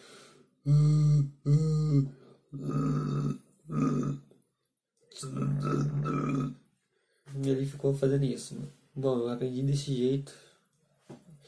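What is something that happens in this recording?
A young man sings softly close by, in short held phrases.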